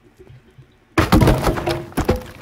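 An axe whooshes through the air.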